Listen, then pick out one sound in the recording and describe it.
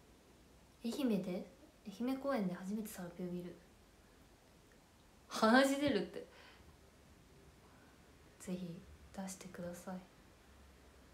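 A young woman speaks calmly and close to a microphone, in short bursts with pauses.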